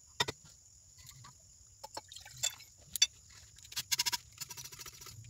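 Glass beakers clink against each other.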